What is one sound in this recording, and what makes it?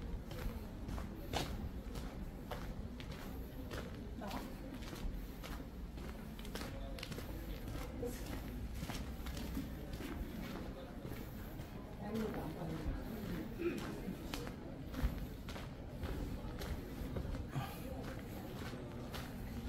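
Footsteps crunch steadily on gravel close by.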